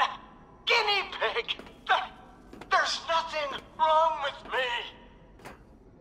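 An elderly man speaks with animation through a speaker.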